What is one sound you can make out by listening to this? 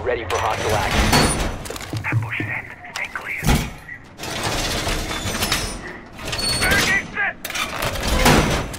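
Heavy metal panels clank and thud into place.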